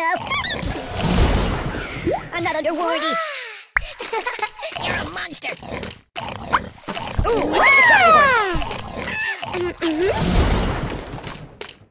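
Cartoon hits thump and smack in a game.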